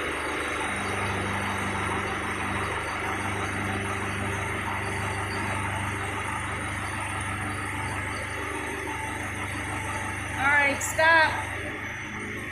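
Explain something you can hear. Hydraulics whine as an excavator arm slowly moves.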